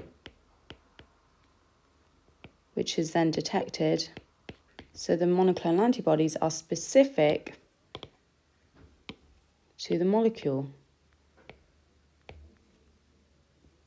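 A stylus taps and scratches on a tablet.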